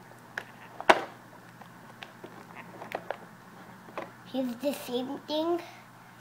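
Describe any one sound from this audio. Plastic toys click and rattle in a plastic tray.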